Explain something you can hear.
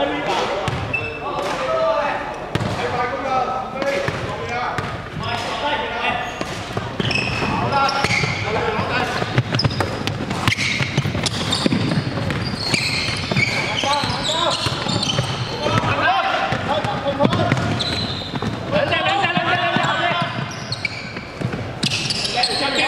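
Basketball sneakers squeak sharply on a wooden floor in an echoing hall.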